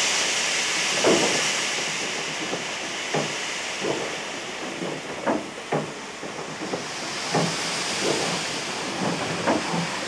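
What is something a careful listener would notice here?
A steam locomotive chuffs in slow, heavy beats.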